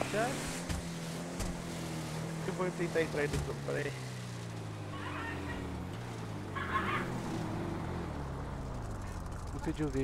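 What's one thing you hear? A car engine hums and revs while driving along a road.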